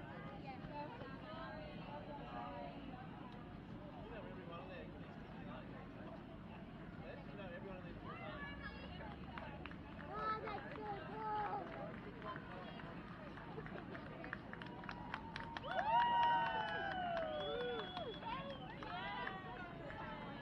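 A crowd of adults and children chatter outdoors nearby.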